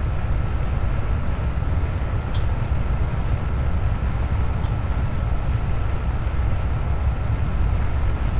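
A rocket engine roars steadily with a deep rumble.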